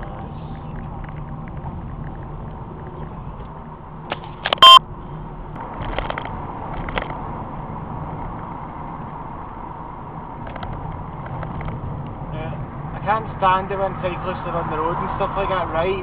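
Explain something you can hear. A car engine hums steadily with tyre noise on the road, heard from inside the car.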